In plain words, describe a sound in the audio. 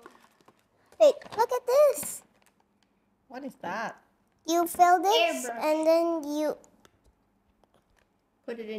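A young girl speaks with animation close to a clip-on microphone.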